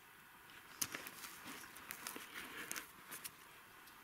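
A hand brushes and scrapes at loose soil and leaves.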